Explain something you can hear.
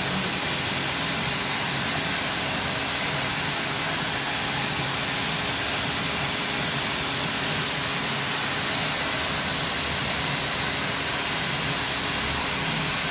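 A pressure washer jet hisses and spatters against tiles.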